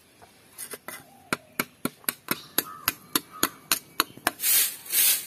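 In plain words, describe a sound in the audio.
A metal trowel scrapes against stone.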